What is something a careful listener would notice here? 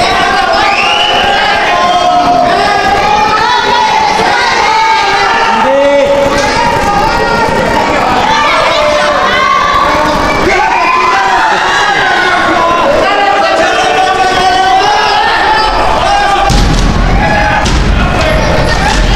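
A crowd shouts and chants in a large echoing hall.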